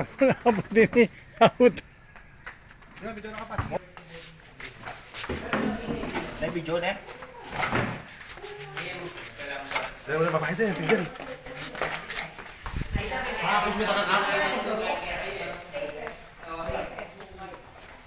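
Men talk and laugh nearby with animation.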